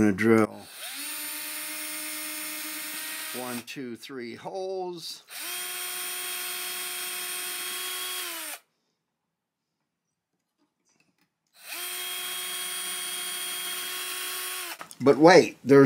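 A cordless drill whirs steadily in short bursts.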